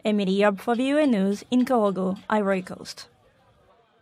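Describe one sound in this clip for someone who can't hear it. A young woman speaks animatedly close by.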